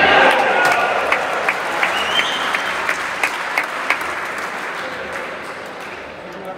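A crowd applauds in a large echoing hall, then the clapping fades.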